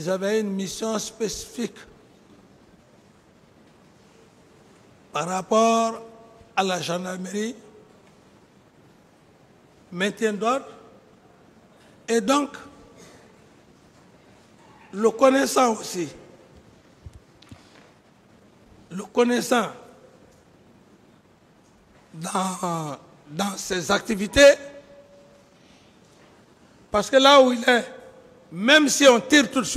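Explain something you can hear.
A man speaks forcefully into a microphone in short bursts, with pauses between them.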